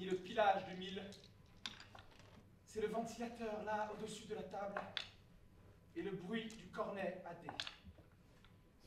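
A middle-aged man speaks calmly and clearly.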